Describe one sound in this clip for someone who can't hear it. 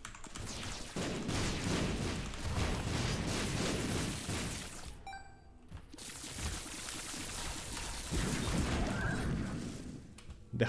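Explosions and bursts of fire boom in quick succession.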